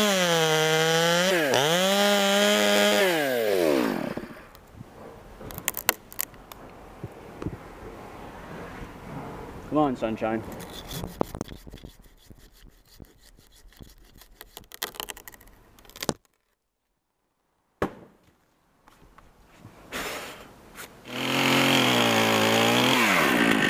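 A chainsaw engine revs loudly and then idles down.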